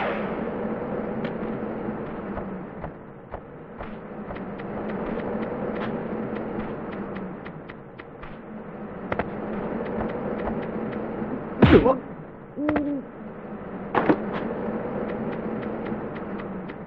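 Footsteps run quickly over wooden boards and hard ground.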